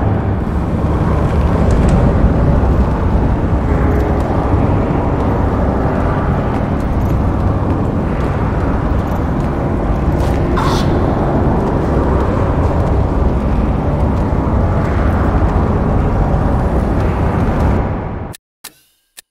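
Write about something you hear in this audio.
A deep, steady roar of bubbling lava rumbles, then suddenly cuts out.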